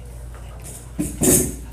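A chair is moved with a loud scrape and knock.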